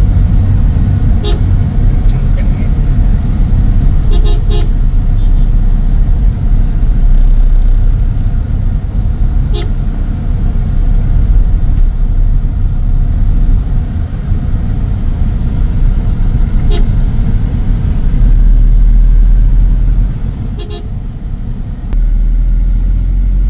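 Traffic rumbles steadily around a slow-moving car.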